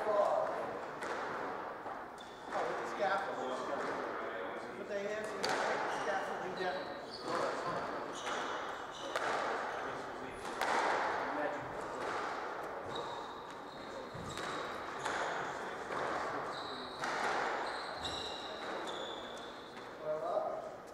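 A squash ball smacks against the walls again and again, echoing around the court.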